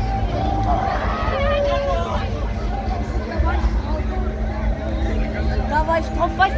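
Riders scream from a swinging fairground ride.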